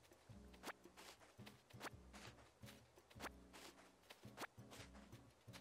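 Light footsteps patter quickly on grass.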